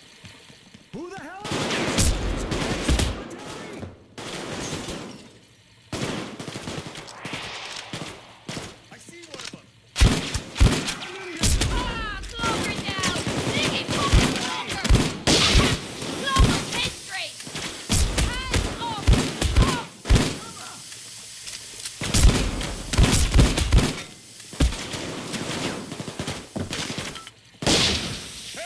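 Gunshots bang repeatedly, echoing off hard walls.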